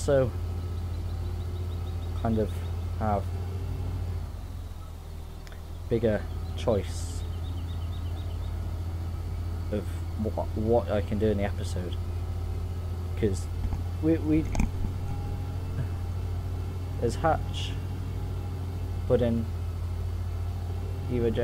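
A diesel engine drones steadily at a low pitch.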